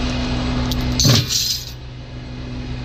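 Metal chains clank and rattle.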